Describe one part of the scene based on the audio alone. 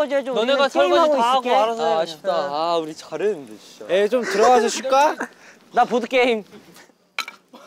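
Young men talk and laugh with animation nearby.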